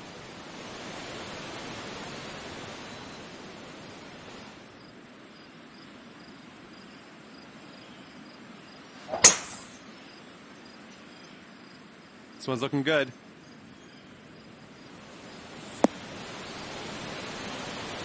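A waterfall rushes steadily.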